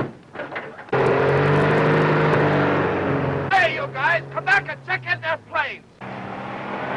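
A man shouts.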